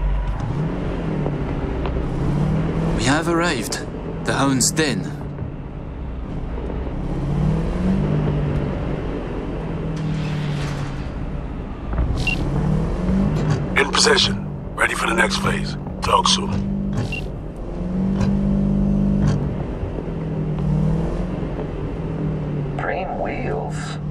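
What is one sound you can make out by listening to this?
A car engine hums steadily, rising and falling slightly as the car drives.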